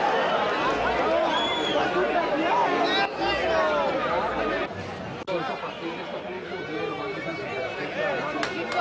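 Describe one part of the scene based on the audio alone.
A large crowd of men and women chatters and murmurs all around, close by, outdoors.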